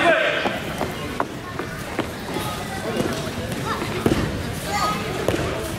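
Bare feet thump and shuffle on a mat.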